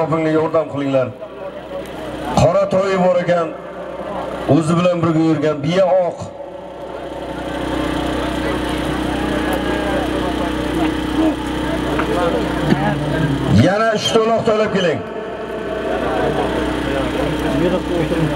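A large crowd of men clamors outdoors.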